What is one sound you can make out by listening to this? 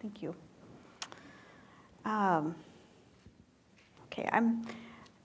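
A woman speaks calmly in short phrases.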